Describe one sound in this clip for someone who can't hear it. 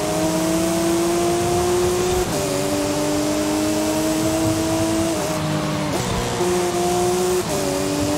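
Rain hisses steadily.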